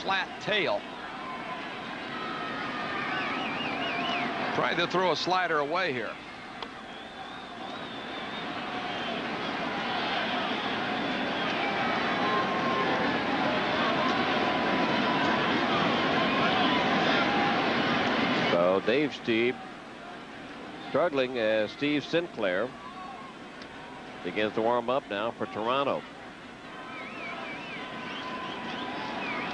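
A large stadium crowd roars and cheers, swelling louder and then easing off.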